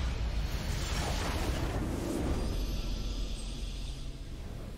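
A large structure explodes with a deep roar.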